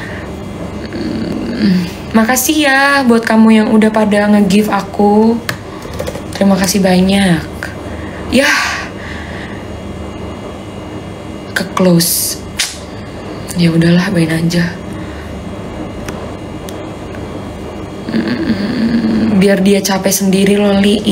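A young woman talks calmly close to a phone microphone, in short bursts.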